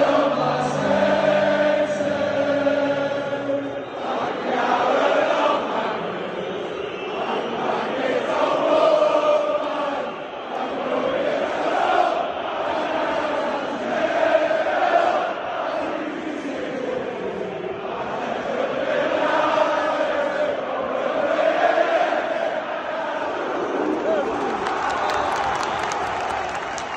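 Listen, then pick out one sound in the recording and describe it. A large stadium crowd sings a chant together, echoing outdoors.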